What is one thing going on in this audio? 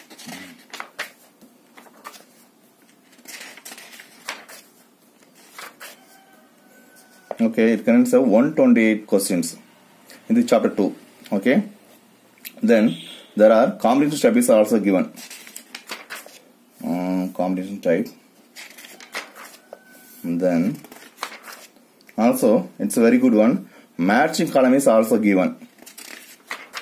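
Paper pages rustle and flip as a book's pages are turned.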